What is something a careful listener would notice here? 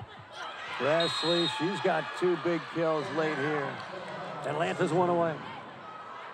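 Young women shout and cheer excitedly.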